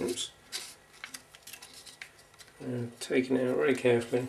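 Small plastic and metal parts click as a hand handles them.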